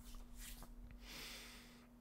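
A young man sighs into his hand.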